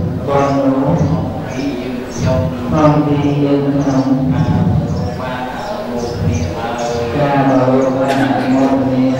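A group of men and women chant together in a steady rhythm.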